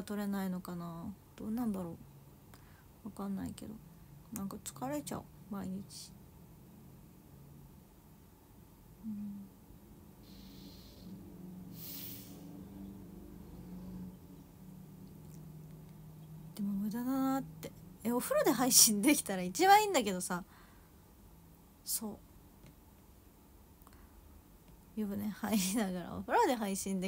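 A young woman talks softly and casually close by.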